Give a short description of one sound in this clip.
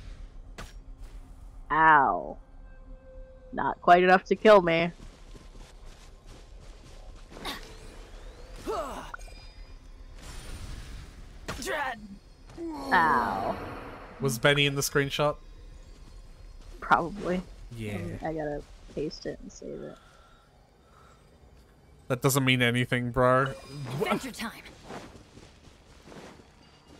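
Blades swish and magic bursts crackle in a fight.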